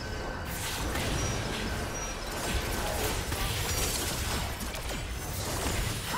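Game spell effects whoosh and crackle in a busy fight.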